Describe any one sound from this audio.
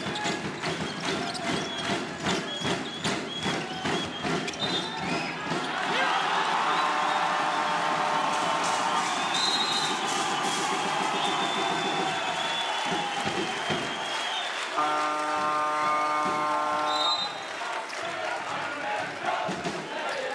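A large crowd cheers and roars in an echoing hall.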